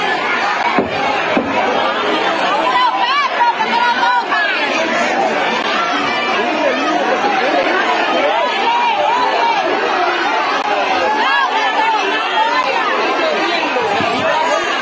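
A large crowd of men and women chatter and call out loudly outdoors.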